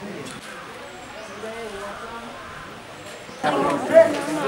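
Several men talk quietly at a distance.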